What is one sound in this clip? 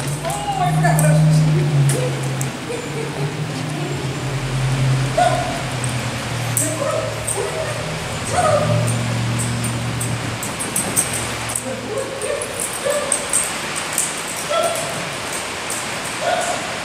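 A woman calls out commands to a dog.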